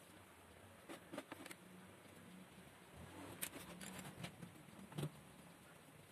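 Small tools click as they are set down on a metal table.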